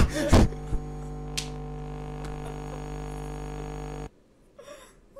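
Loud electronic static hisses and hums steadily, then cuts off abruptly.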